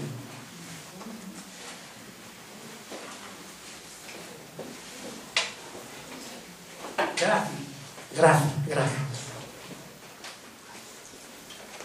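An elderly man speaks through a microphone, reading out and then talking with emphasis.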